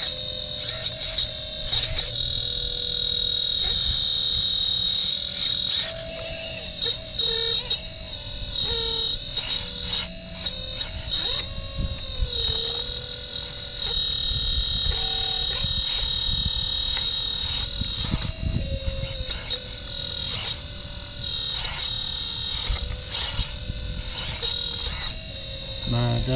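A toy excavator's electric motors whine steadily, changing pitch as the arm moves.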